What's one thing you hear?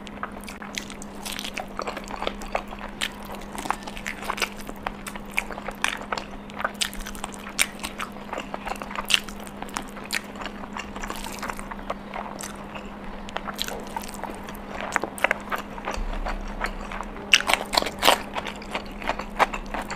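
A young woman bites into crunchy food close to a microphone.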